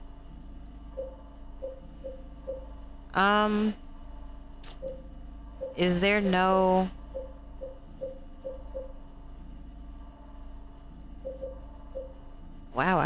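A game menu beeps softly as the selection moves.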